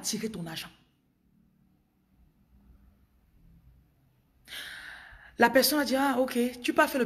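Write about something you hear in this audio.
A young woman speaks close up, with feeling.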